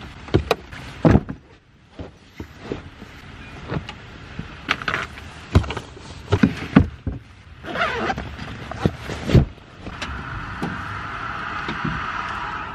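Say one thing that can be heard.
Fabric rustles as bags are shifted about.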